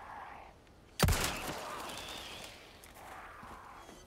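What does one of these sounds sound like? A gunshot cracks and echoes.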